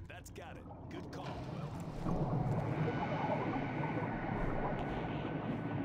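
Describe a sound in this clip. Water churns and bubbles underwater.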